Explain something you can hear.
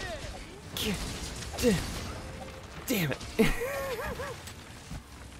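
Fiery blasts crackle and boom in a fight.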